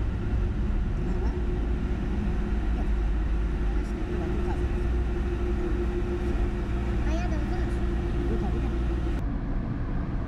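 A truck engine rumbles low just ahead.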